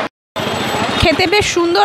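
A young woman speaks close to the microphone.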